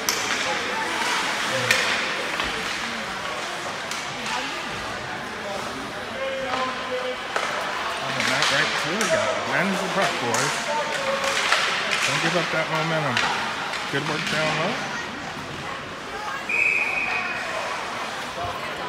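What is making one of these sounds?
Skates scrape across the ice in a large echoing rink.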